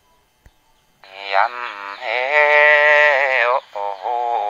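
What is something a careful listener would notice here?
A woman sings in a high, long held voice.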